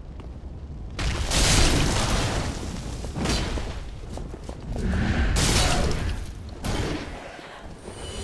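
A heavy sword swooshes through the air.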